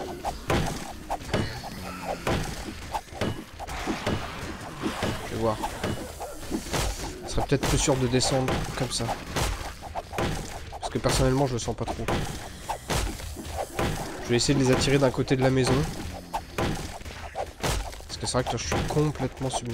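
Wooden knocks and thuds come again and again.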